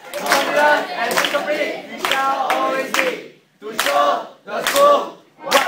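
A group of young people clap their hands in rhythm.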